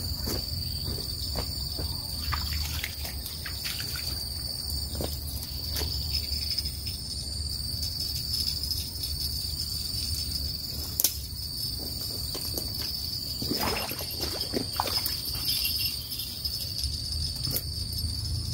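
A man rustles and snaps dry branches close by.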